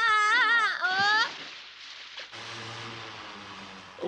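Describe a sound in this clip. Water splashes loudly as a boy dives in.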